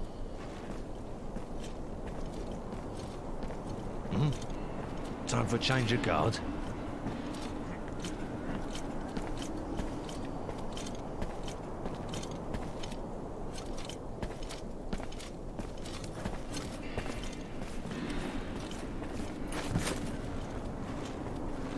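Footsteps tap softly on stone.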